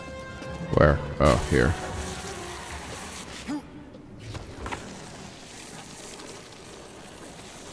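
Footsteps scrape and tap on rocky ground.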